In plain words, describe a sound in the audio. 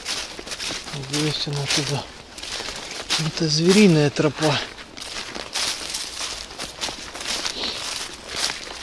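Footsteps crunch through dry leaves and brush.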